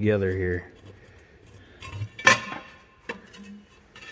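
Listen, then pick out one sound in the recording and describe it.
A metal cover plate clanks as it is pulled off.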